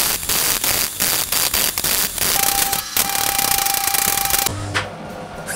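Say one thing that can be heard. An arc welder crackles and sizzles on steel tubing.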